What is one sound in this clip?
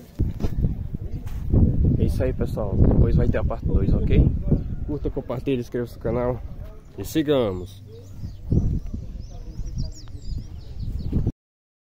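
A young man talks with animation close to a phone's microphone.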